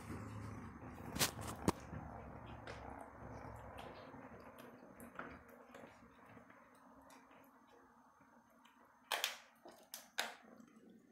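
A kitten chews and licks up close, with soft wet clicks.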